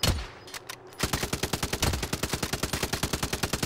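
A helicopter's rotor thumps rapidly nearby.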